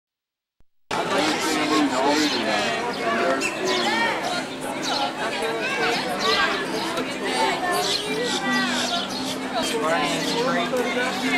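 A crowd of people chatter in the background outdoors.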